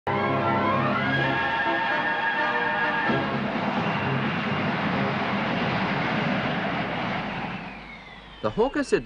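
A Harrier jump jet's turbofan roars as the jet hovers and sets down.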